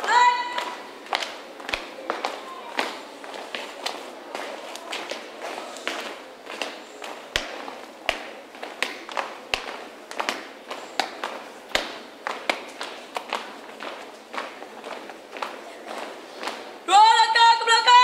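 Many feet stamp in steady marching rhythm outdoors.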